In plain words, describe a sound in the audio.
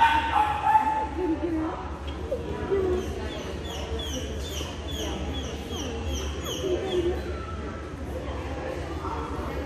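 Women talk casually nearby in a large echoing hall.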